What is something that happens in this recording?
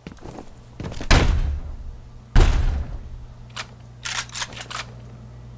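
A gun fires loud, sharp shots.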